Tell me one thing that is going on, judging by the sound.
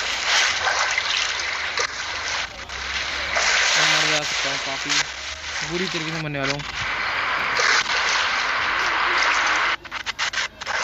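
Water splashes steadily as a swimmer strokes through it.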